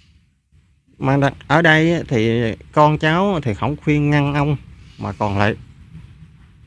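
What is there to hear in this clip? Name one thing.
A young man speaks calmly and close to the microphone.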